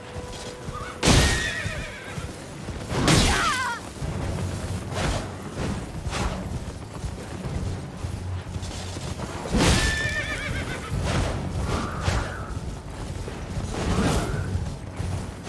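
Swords clash and strike with sharp metallic blows.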